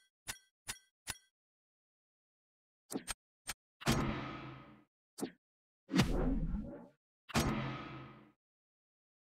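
Short menu clicks and chimes sound from a game.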